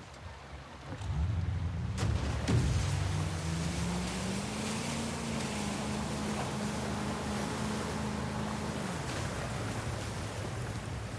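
Water splashes and rushes past a boat's hull.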